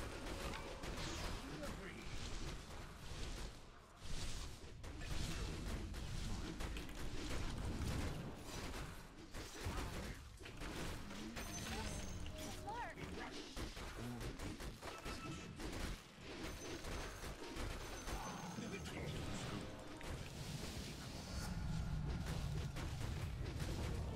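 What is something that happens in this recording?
Spell blasts and clashing weapons ring out in a fast game battle.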